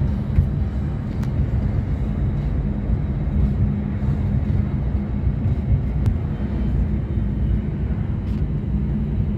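A vehicle's engine rumbles steadily from inside the cabin while driving.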